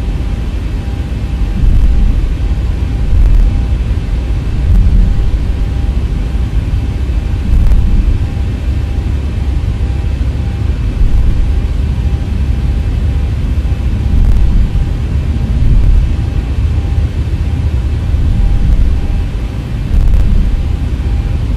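Aircraft tyres rumble and thump at regular intervals over a taxiway.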